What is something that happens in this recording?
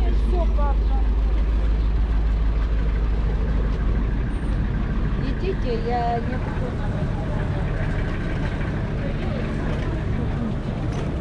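People chat in a busy outdoor crowd nearby.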